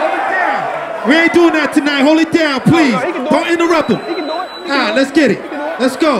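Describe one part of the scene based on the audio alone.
A man raps forcefully into a microphone, heard through loudspeakers.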